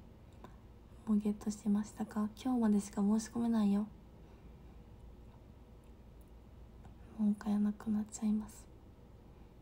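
A young woman speaks softly and casually close to a microphone.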